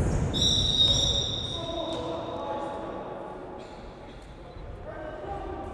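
Young men shout to each other in an echoing hall.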